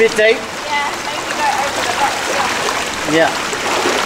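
Bare feet splash through shallow running water.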